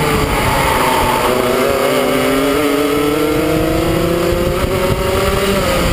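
A kart engine whines loudly up close, its pitch slowly rising.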